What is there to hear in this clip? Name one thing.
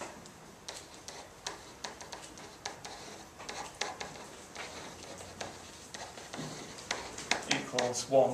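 A pen taps and squeaks on a board.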